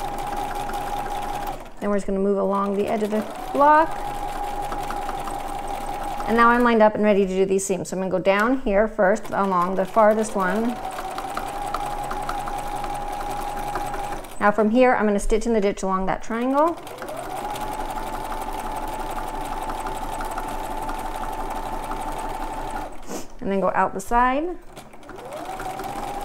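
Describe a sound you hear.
A sewing machine motor whirs steadily as the needle stitches.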